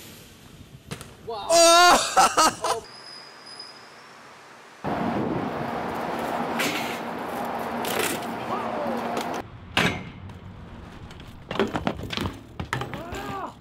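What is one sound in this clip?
A bike lands hard on concrete with a thud.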